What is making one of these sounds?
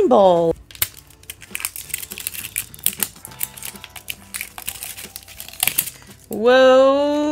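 Thin plastic wrap crinkles and crackles as fingers peel it off a plastic capsule.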